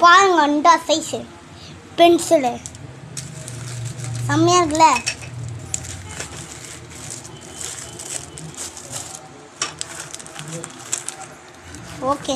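Plastic packets rustle and crinkle close by.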